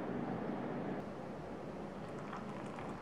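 Water trickles gently onto coffee grounds.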